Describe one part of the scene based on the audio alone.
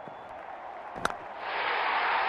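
A bat strikes a ball with a sharp knock.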